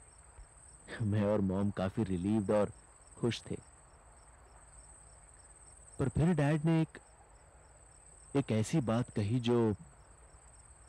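A second young man answers calmly, close by.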